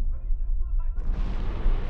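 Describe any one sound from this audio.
A rocket roars as it launches.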